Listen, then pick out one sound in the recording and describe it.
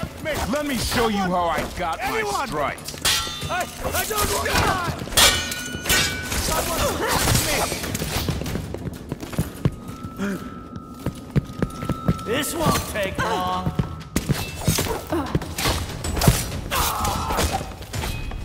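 Sword blades clash and slash with sharp metallic rings.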